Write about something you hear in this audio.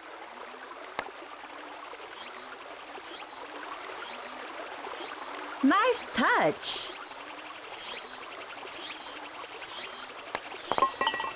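A putter taps a golf ball with a light click.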